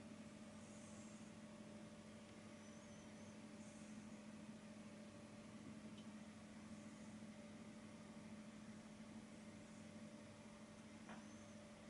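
A paintbrush softly brushes across canvas.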